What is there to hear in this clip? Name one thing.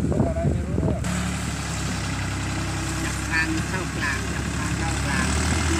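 A tractor engine rumbles steadily nearby.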